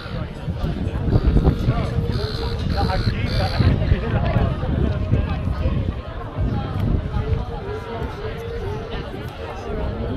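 A crowd chatters and talks outdoors nearby.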